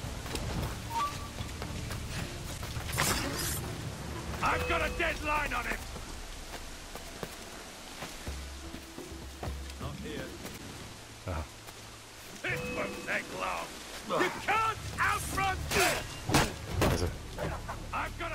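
Footsteps thud on stone and wooden boards.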